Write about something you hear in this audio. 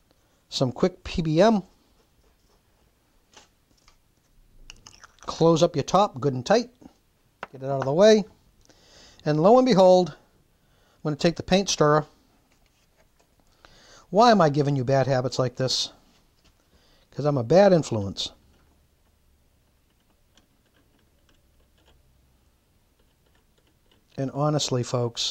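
A man talks calmly and close by, in short phrases with pauses.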